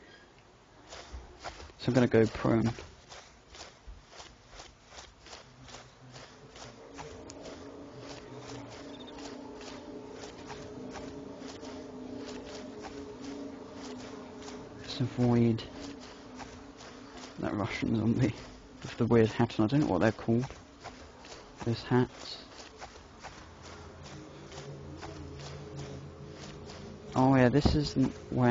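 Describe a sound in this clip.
Grass rustles steadily as someone crawls through it.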